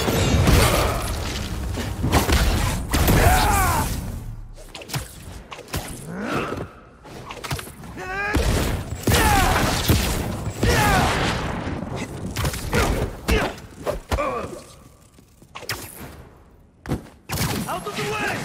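Blows thud and crack as fighters strike each other.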